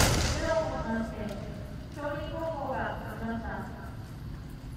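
Young fencers shout loudly in a large echoing hall.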